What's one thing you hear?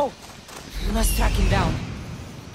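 An eagle screeches overhead.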